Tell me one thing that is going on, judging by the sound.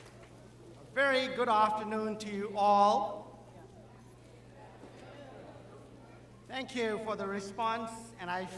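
An older man speaks calmly into a microphone, echoing through a large hall.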